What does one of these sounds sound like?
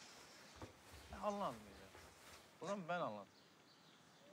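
A man speaks outdoors at a distance.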